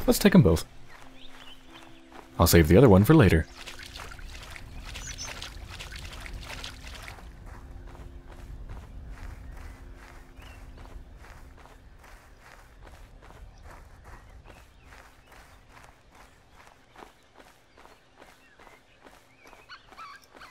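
Footsteps swish through dry grass at a steady walking pace.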